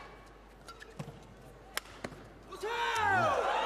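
Sneakers squeak loudly on a court floor.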